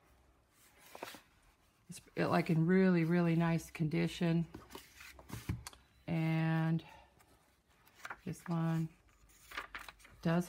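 Book pages rustle softly as they are handled.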